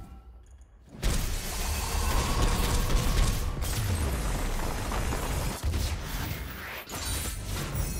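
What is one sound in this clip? A deep magical whoosh and rumble swells up and roars.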